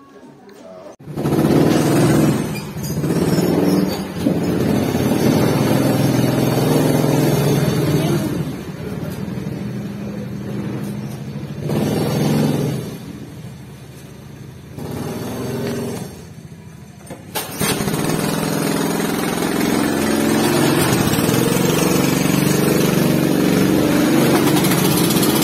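A go-kart engine idles and revs up close.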